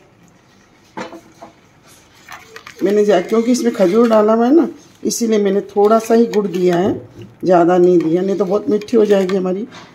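A metal ladle stirs and clinks against a metal pot.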